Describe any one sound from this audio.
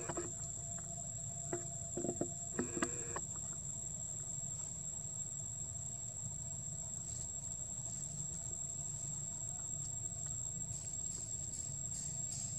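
A monkey gnaws and chews on a corn cob.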